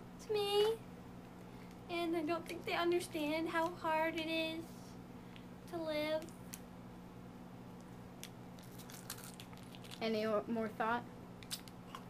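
A young girl speaks close by, calmly and in short bursts.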